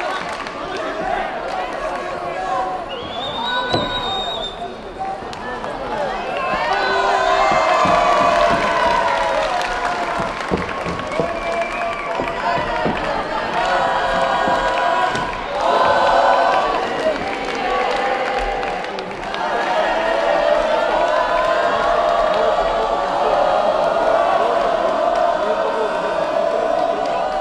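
A large crowd shouts and cheers in a big echoing hall.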